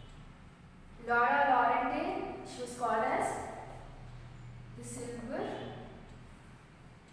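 A young woman speaks clearly and calmly, close by.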